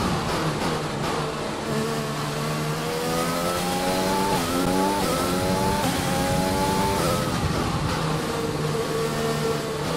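A racing car engine whines loudly, rising in pitch and dropping again with each gear shift.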